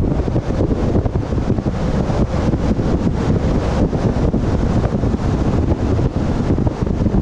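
Wind buffets loudly against a moving vehicle outdoors.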